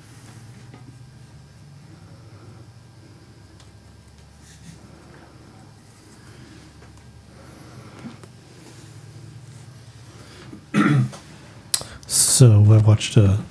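A paintbrush strokes softly across canvas.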